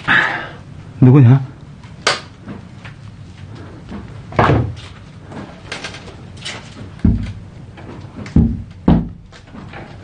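A hand knocks on a wooden door.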